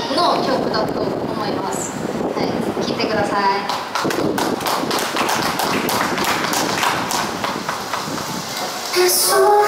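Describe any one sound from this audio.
A young woman sings into a microphone through loudspeakers.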